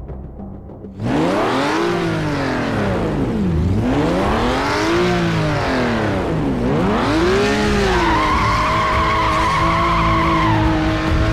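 A race car engine revs up and down repeatedly.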